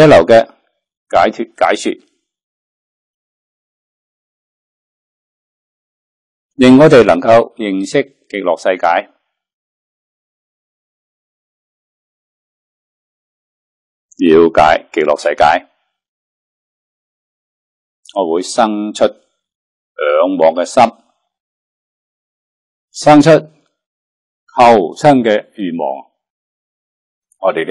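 An elderly man speaks calmly into a close microphone, with long pauses.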